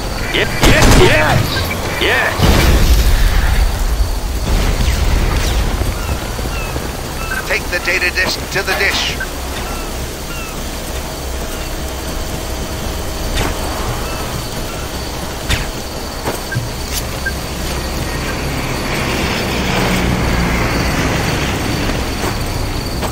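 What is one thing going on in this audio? Heavy rain pours down steadily in a storm.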